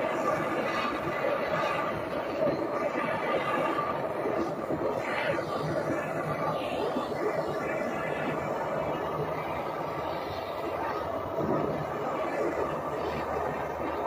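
A gas torch flame roars steadily.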